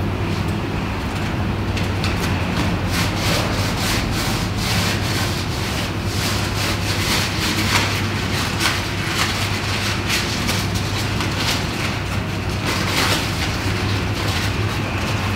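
A plastic bottle crinkles in a man's hands.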